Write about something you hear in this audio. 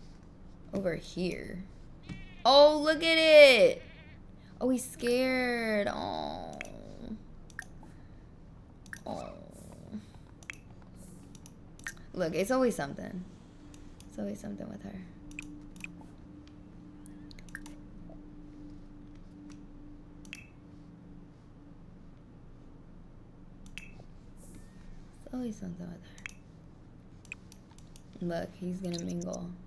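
A young woman talks with animation close to a microphone, in short bursts.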